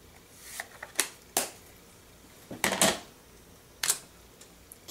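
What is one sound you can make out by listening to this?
A stamp block clacks on a table.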